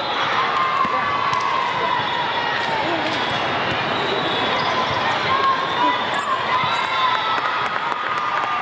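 A crowd of girls and women chatter and cheer in a large echoing hall.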